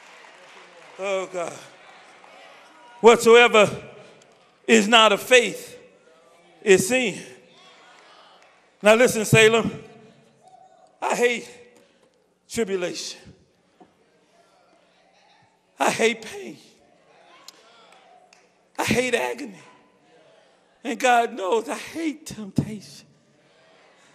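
A man preaches forcefully into a microphone in short bursts, with pauses between phrases.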